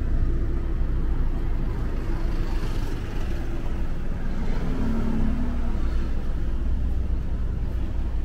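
A bus drives past close by with a low engine rumble.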